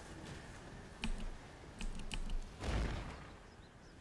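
Magic spells burst and crackle in quick, sharp impacts.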